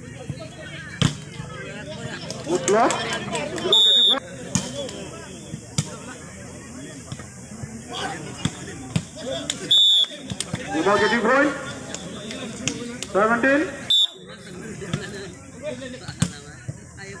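A ball is struck with a sharp slap.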